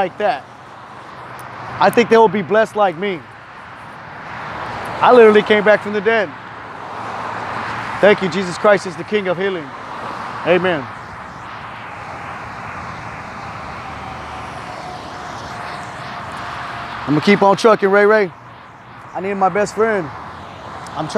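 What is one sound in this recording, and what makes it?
A young man talks casually, close up.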